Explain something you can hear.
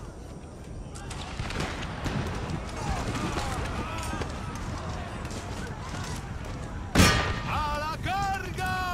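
Musket fire crackles in a distant battle.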